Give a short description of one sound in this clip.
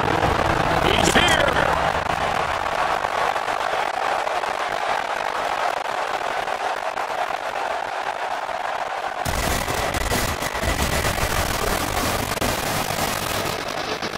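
A large crowd cheers in an echoing arena.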